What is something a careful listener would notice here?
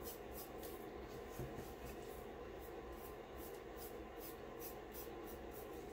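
A stick stirs a thick liquid in a metal jug, scraping lightly against the inside.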